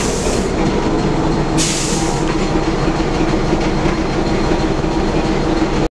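A locomotive's diesel engine rumbles and hums steadily.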